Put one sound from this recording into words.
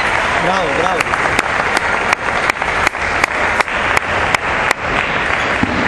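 A table tennis ball bounces on a hard surface, click after click, in a large echoing hall.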